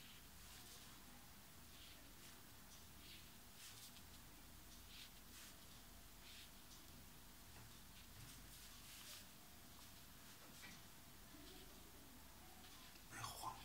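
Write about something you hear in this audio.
A brush swishes softly across paper.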